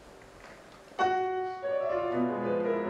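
A piano plays.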